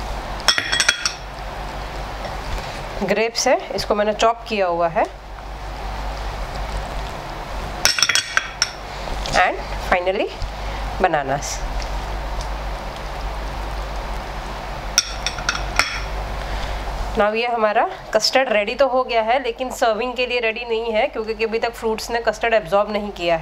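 A spatula stirs a thick liquid in a pot.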